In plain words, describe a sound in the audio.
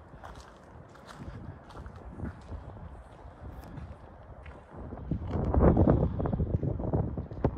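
Wind gusts against the microphone outdoors, growing stronger toward the end.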